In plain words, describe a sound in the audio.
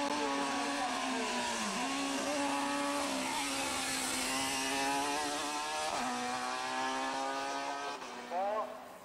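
A racing car engine screams at high revs as the car speeds past.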